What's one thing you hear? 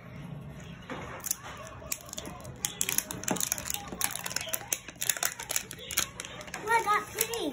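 Plastic wrapping crinkles and tears as a young girl unwraps a toy ball.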